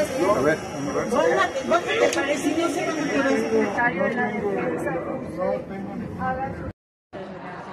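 Several men talk over one another close by in a crowded space.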